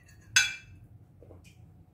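A metal spoon clinks against a glass dish.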